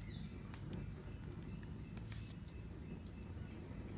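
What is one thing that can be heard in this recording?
A plastic spoon taps against a metal bowl.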